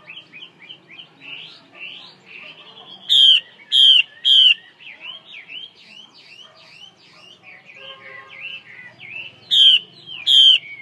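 A songbird sings close by in rapid, rising chirps with loud, sharp bursts.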